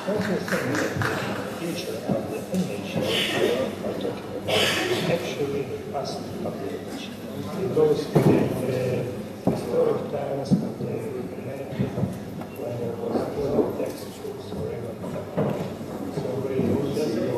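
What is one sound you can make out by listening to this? A second middle-aged man speaks into a microphone.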